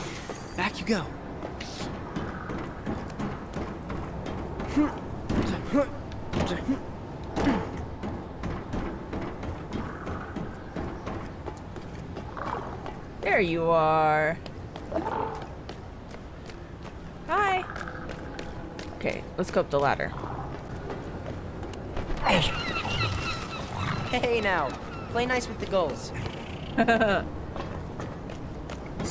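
Footsteps patter quickly across hard rooftops.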